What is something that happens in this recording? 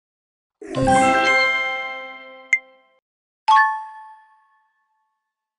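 A bright game jingle chimes and rings out.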